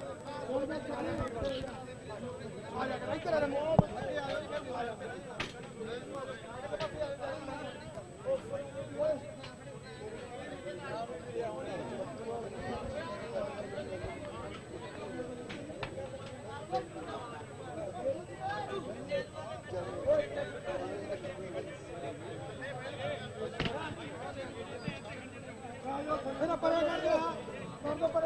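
Many men talk over one another in a crowd close by.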